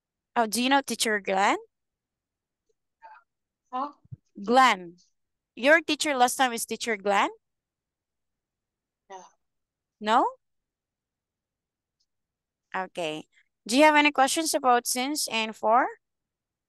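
A woman speaks calmly through a microphone, in short phrases with pauses.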